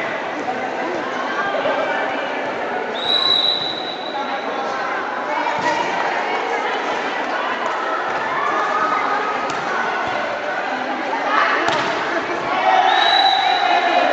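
A volleyball thuds against a player's arms.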